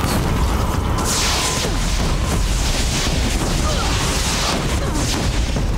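Sparks and debris crackle and hiss.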